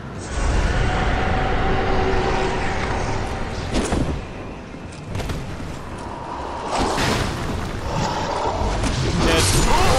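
Metal weapons clash and ring sharply.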